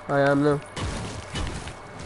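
Gunshots from a video game crack in quick bursts.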